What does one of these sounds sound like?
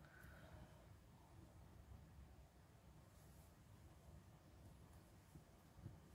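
A rubber stamp presses softly onto a strip of fabric.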